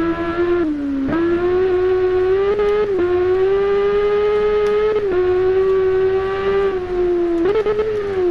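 A motorcycle engine roars loudly, its pitch dropping with each gear change and then climbing again.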